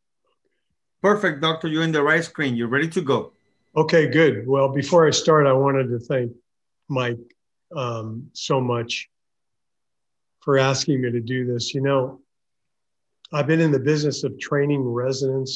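An older man speaks calmly through an online call.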